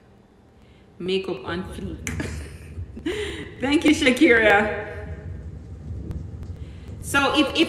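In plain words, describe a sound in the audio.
A woman sings close into a microphone.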